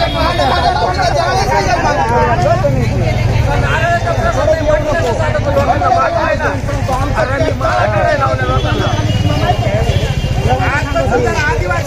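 A crowd of men talk over one another loudly outdoors.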